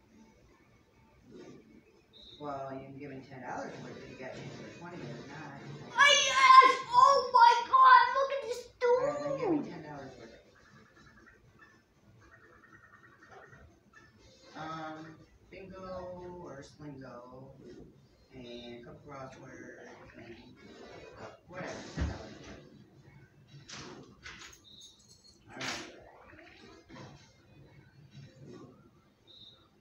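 Video game music and chiming sound effects play from a television.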